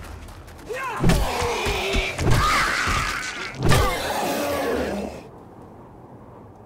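A wooden club thuds against a body.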